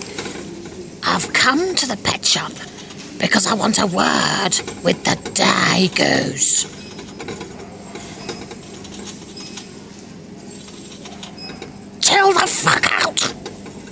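A young woman speaks in a silly, playful character voice close by.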